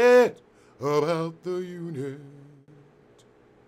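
A man speaks expressively, close to a microphone.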